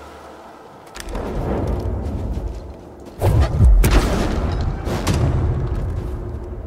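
A heavy stone block crashes down with a loud thud.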